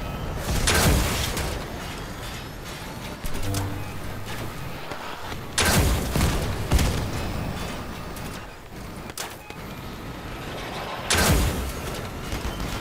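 Heavy guns on an armoured vehicle fire.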